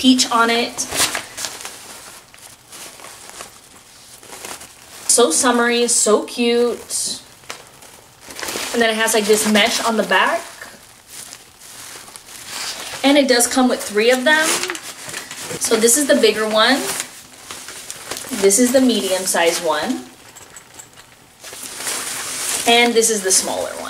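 Fabric rustles as a bag is handled.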